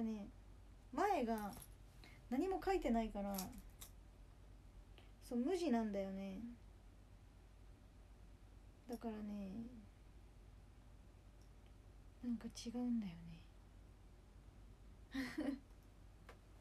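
A young woman speaks softly and close up, in short phrases with pauses.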